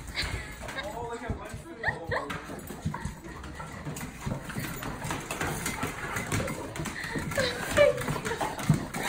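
A dog whines softly.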